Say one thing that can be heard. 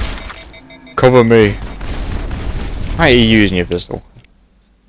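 Short electronic tones sweep up and down.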